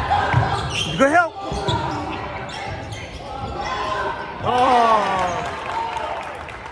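Basketball shoes squeak sharply on the court.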